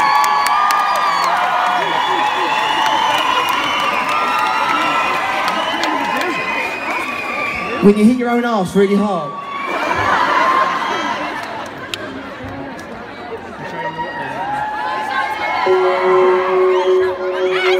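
A crowd sings along loudly nearby.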